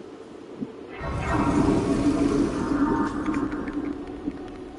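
A shimmering magical chime swells and rings out.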